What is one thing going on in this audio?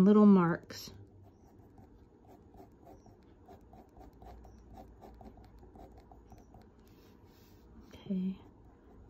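A pen scratches lightly on paper in short strokes.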